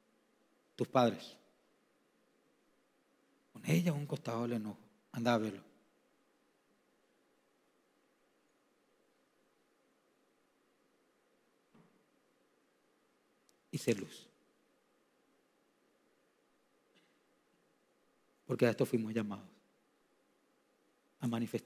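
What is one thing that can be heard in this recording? A man speaks calmly through a microphone, pausing between short phrases, in an echoing hall.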